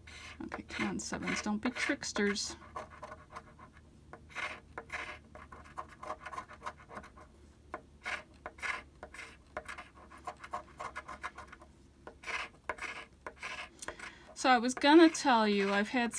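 A coin scratches rapidly at a card with short, rasping strokes.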